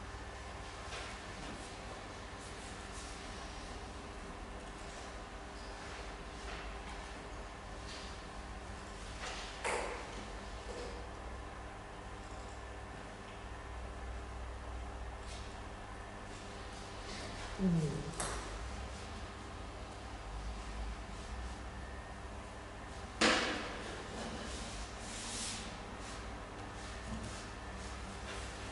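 A computer mouse clicks softly now and then.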